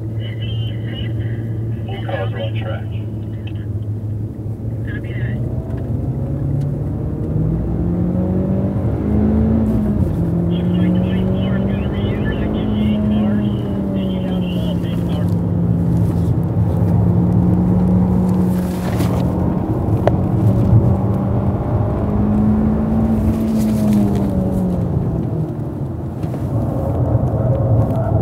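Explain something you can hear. A car engine roars and revs up and down through the gears from inside the car.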